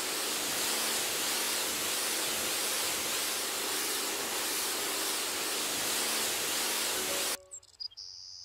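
A pressure washer sprays water against a wall.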